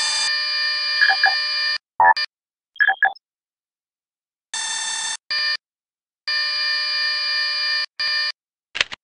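Electronic beeps and hums from a game interface play in short bursts.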